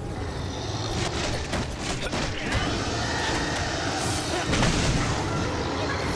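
Weapons clash and strike with sharp hits.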